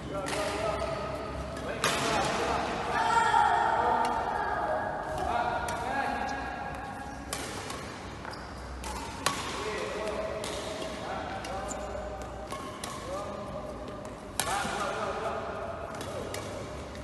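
Children call out to each other while they play.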